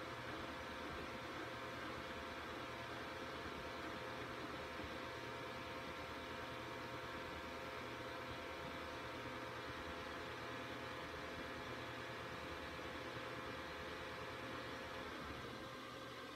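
An electronic hum drones steadily, then drops quieter.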